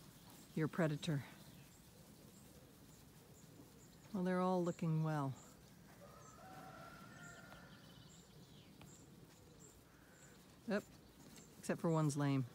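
Sheep bleat loudly nearby, several times.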